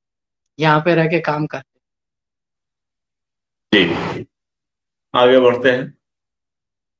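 A middle-aged man speaks in short bursts over an online call.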